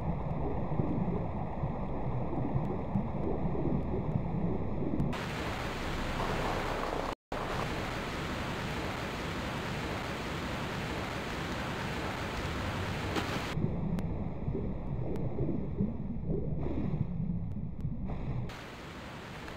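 Water bubbles and rushes in a steady roar.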